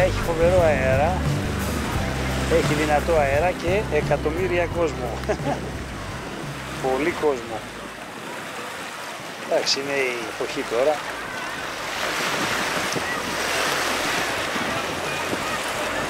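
Small waves wash gently onto a pebbly shore.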